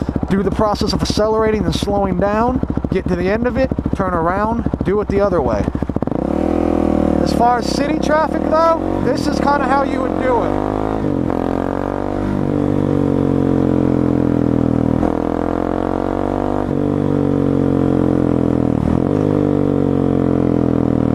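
A motorcycle engine revs up and down as it shifts through the gears.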